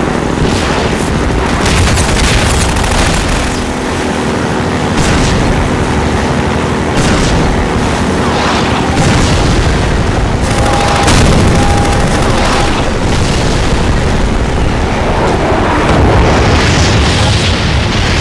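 A boat engine roars loudly and steadily.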